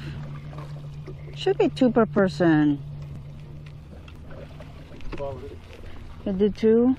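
An outboard motor idles with a low steady hum.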